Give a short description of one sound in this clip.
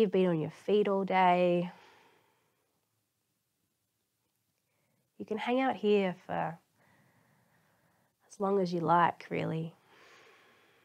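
A woman speaks calmly in short, unhurried phrases, with long pauses between them, in a slightly echoing room.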